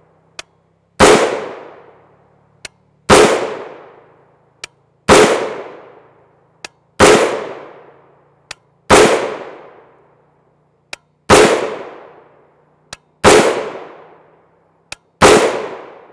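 A rifle fires single loud shots at a steady pace outdoors, each echoing and fading.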